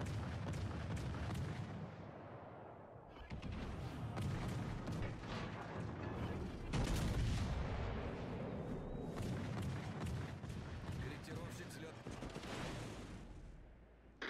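Heavy ship guns fire with deep, rumbling booms.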